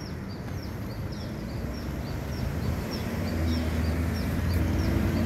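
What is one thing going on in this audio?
A pedestrian crossing signal chirps rapidly and repeatedly.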